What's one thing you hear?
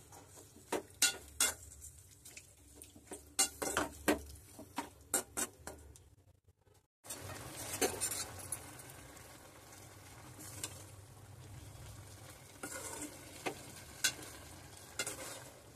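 A metal spoon scrapes and clinks against a pan while stirring food.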